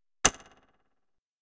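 A menu button clicks once.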